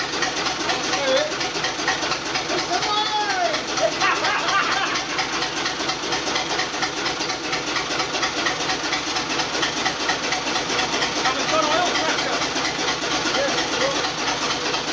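A man talks close by over the engine.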